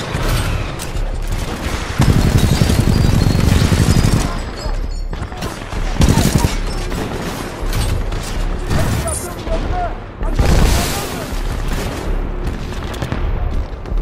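A heavy gun fires rapid bursts with loud booming blasts.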